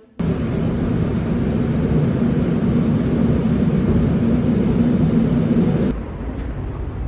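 A train rumbles steadily while moving.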